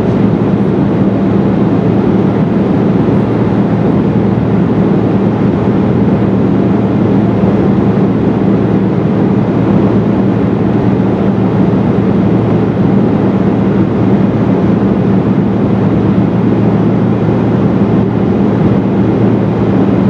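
Jet engines roar with a steady, low drone inside an airplane cabin in flight.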